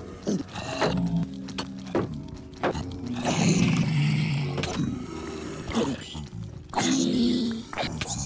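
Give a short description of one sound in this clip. A sword strikes in quick blows.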